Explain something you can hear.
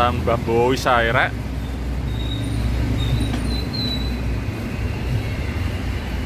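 A motorbike engine hums as it rides up close.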